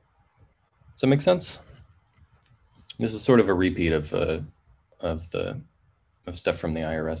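A man speaks calmly through a computer microphone.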